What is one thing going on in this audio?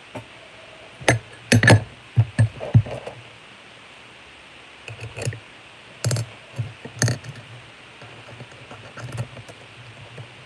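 Small objects click and clatter in a woman's hands.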